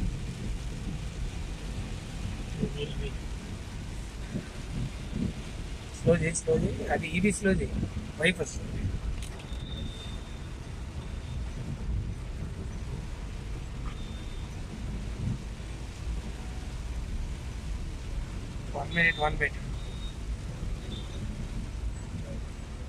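Rain patters on a car windscreen.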